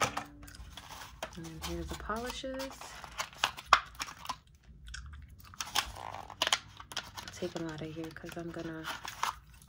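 Fingernails tap and click against plastic bottle caps.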